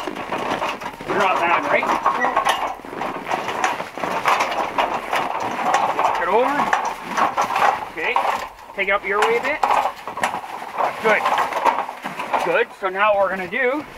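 A metal scaffold rattles as it is rolled and set in place.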